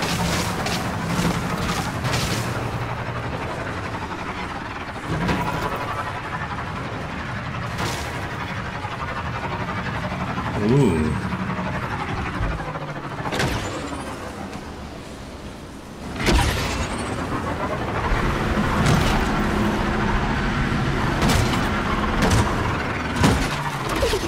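A motorbike engine hums steadily as the bike rides over rough ground.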